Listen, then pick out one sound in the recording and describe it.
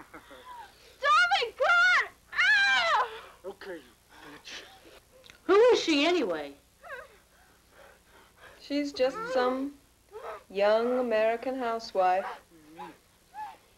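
A woman speaks softly and closely.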